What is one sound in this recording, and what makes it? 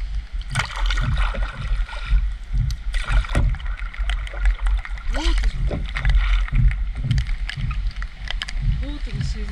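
A paddle dips and splashes in the water in a steady rhythm.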